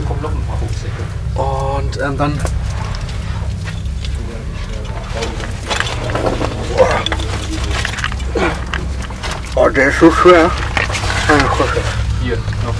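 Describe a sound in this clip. Boots scrape and shuffle on rock.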